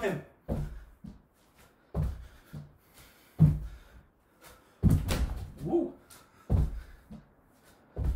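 Feet land with heavy thuds on a wooden floor as a man jumps.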